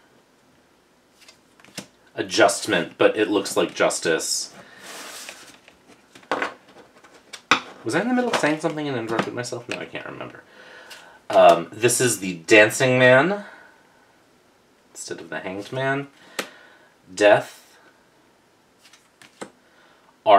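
Playing cards slide and flip on a wooden table.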